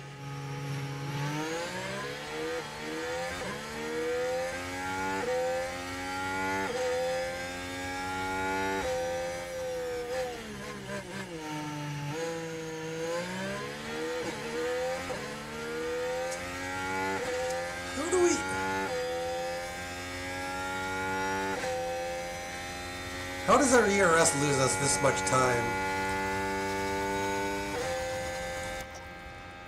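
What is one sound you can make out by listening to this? A racing car engine roars at high revs, shifting up through the gears.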